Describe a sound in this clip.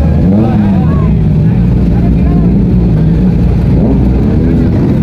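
Motorcycle engines rumble loudly close by, revving up and down now and then.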